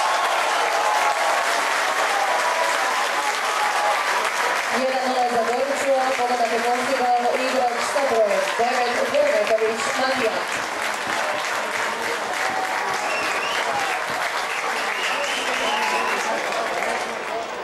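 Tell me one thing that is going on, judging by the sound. Young men shout and cheer in celebration outdoors.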